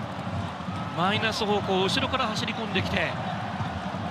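A large crowd roars loudly as a goal is scored.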